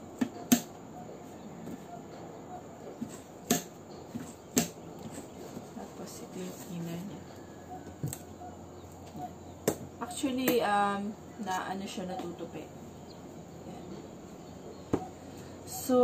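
A cardboard box taps and rustles as it is opened and handled.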